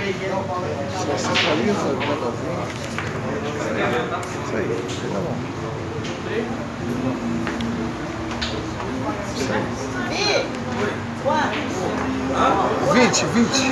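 Pool balls click against each other.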